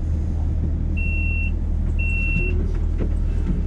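A tram's door warning chime beeps twice.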